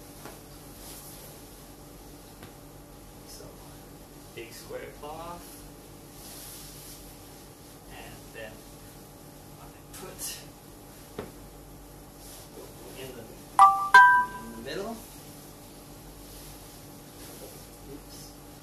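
A cloth sheet rustles and flaps as it is spread and folded.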